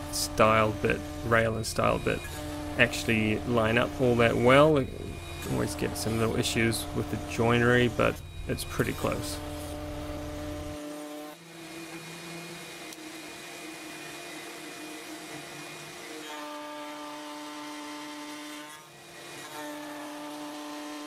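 A router bit cuts into wood.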